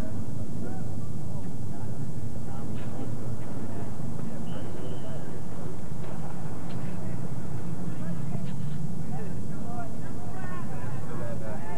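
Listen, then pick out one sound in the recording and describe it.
Players call out to each other across an open field.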